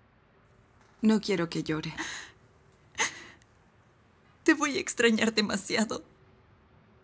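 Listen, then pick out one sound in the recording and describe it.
An elderly woman speaks in a pleading, tearful voice.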